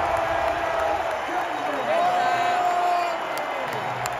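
A man close by shouts and cheers.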